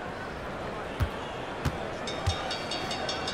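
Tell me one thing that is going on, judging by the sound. A basketball bounces on a hard court a few times.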